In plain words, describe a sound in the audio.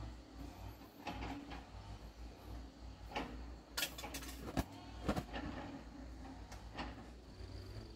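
Objects knock and clatter inside a hut.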